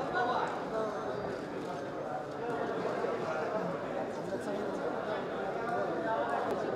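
A crowd of men and women murmur and talk quietly nearby.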